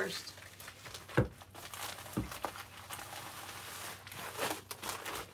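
A plastic mailer envelope rustles and crinkles as it is handled.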